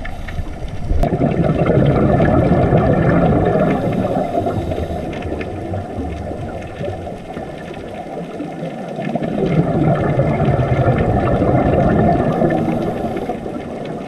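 Bubbles rush and gurgle in swells as a diver breathes out underwater.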